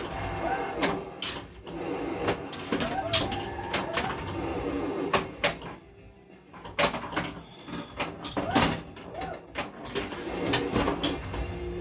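A pinball ball knocks against bumpers and flippers with sharp clacks.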